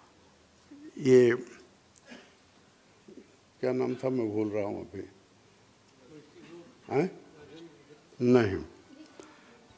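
An elderly man speaks slowly into a microphone, with pauses.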